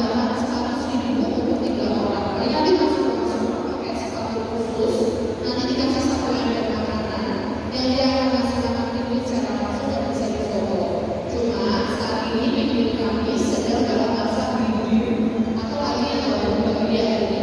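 A young woman speaks through a microphone over a loudspeaker, echoing in a large hall.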